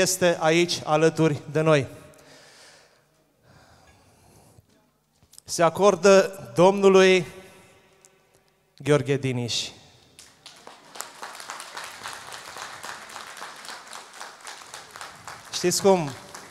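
A man sings loudly through a microphone and loudspeakers, in a large echoing hall.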